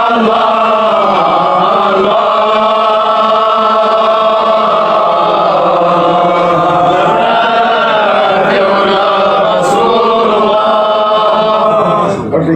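An elderly man chants slowly and melodiously, close to a microphone.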